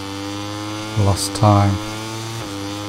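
A motorcycle engine revs sharply up and down in quick bursts.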